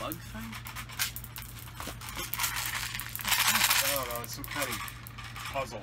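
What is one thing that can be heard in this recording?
Plastic packaging rustles and crinkles in hands.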